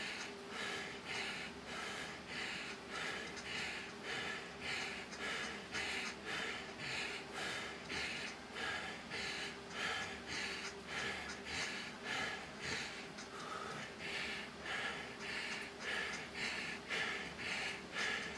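A man breathes heavily in a steady, fast rhythm close by.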